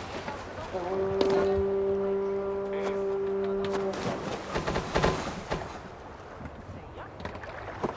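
Oars splash in the water as a longship rows along.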